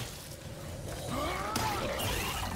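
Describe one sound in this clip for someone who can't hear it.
A creature snarls and screeches up close.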